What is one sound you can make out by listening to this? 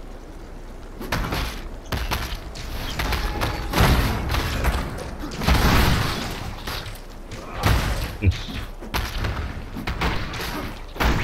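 Spells crackle and burst in a fight, again and again.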